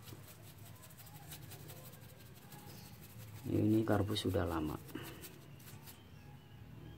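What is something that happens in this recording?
A small brush scrubs and scratches against metal parts.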